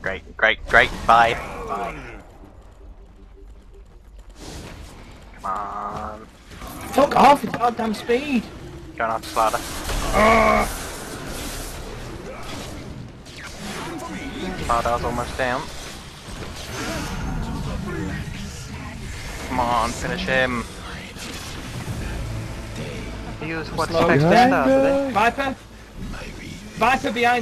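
Fantasy battle sound effects of magic spells whoosh and crackle.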